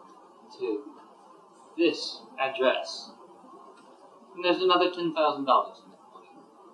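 A man speaks in a low voice close by.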